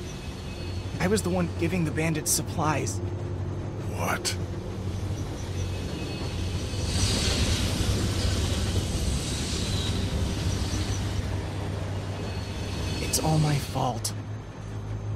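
A young man speaks in a friendly, apologetic voice.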